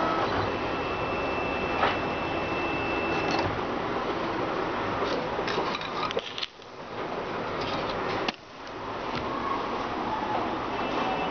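A printer's motors whir and buzz steadily as its nozzle moves back and forth.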